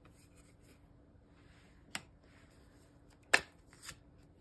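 A card is laid down on a cloth with a soft tap.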